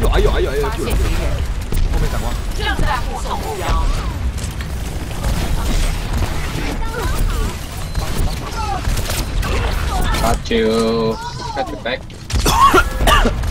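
Rapid gunfire rattles and booms in loud bursts.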